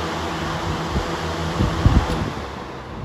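A fan switch clicks.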